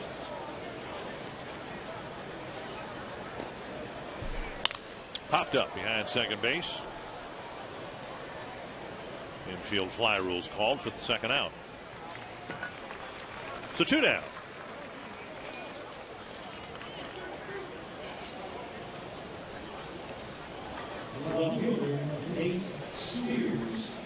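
A large stadium crowd murmurs and cheers outdoors.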